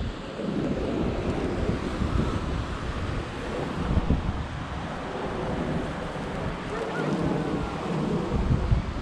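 Wind gusts roughly past, outdoors.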